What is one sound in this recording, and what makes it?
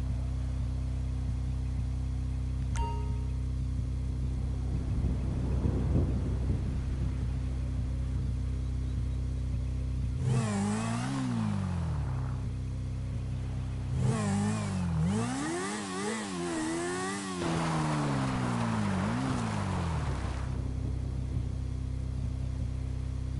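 A motorbike engine drones steadily.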